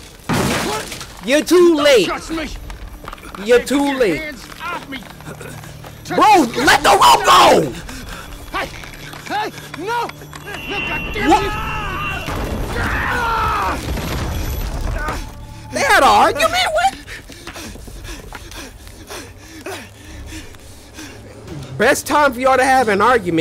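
A young man talks excitedly and shouts close to a microphone.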